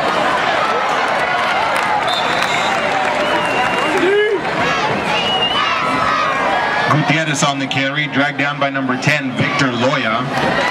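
A crowd of young men shout and chatter outdoors.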